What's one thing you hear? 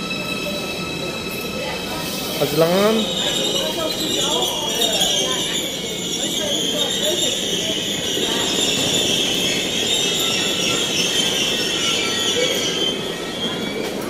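A train rolls into the station and comes to a halt with high squealing brakes.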